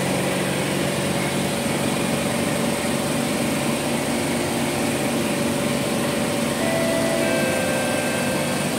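A stopped train's machinery hums steadily.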